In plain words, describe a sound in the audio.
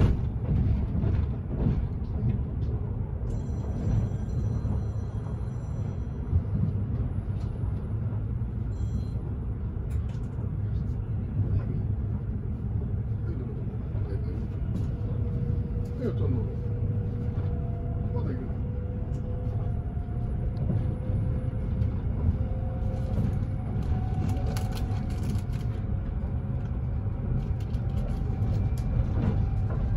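Wheels clack over rail joints.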